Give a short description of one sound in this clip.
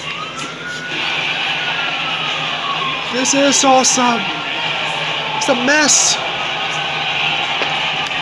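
A game crowd cheers and roars through a television speaker.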